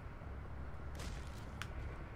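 A body thuds onto pavement.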